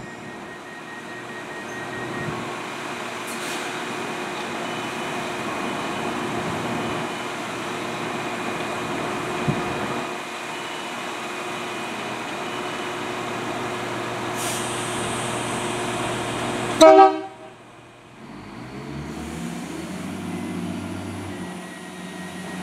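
A train engine hums steadily while idling.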